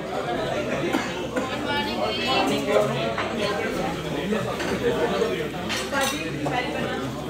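A crowd of men chatters loudly nearby.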